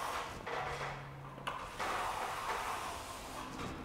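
A plastering trowel scrapes and smooths wet plaster on a ceiling.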